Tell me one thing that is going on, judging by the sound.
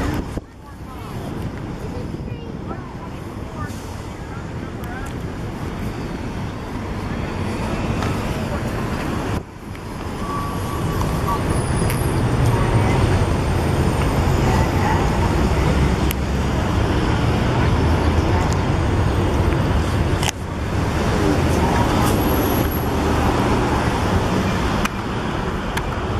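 Cars and trucks drive past steadily on a busy street.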